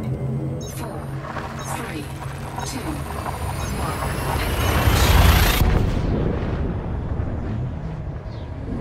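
A deep engine hum drones steadily.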